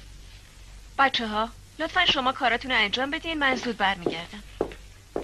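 A woman speaks firmly to a class.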